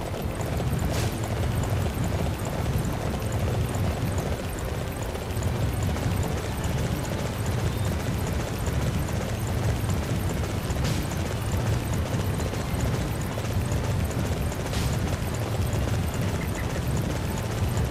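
A creature's feet thud steadily as it runs.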